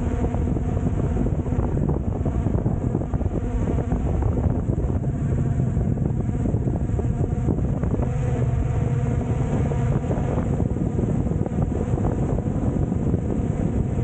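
Wind rushes and buffets outdoors.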